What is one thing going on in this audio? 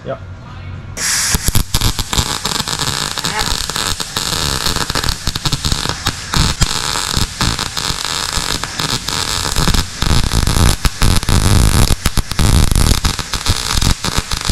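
A welding torch crackles and sizzles steadily, close by.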